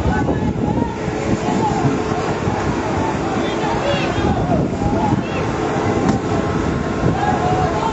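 A crowd of people shout and call out below, heard from a distance.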